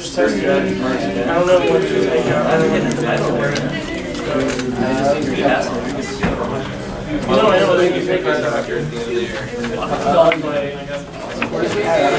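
Playing cards slide and rustle against each other.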